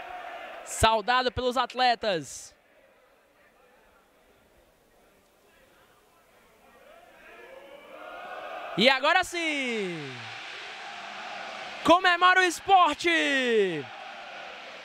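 Young men shout and cheer loudly together.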